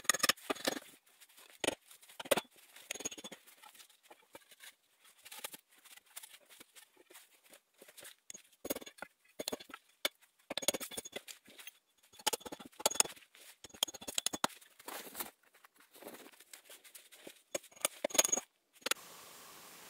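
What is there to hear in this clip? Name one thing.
A person works close by, with sharp knocks, scrapes and crunches in the snow.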